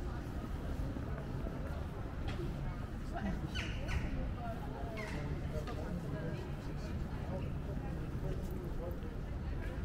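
People chatter in the distance outdoors.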